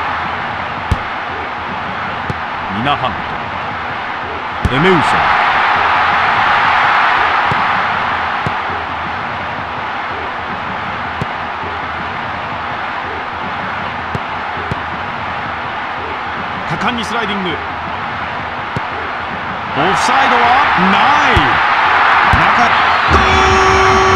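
A football is kicked with dull thuds.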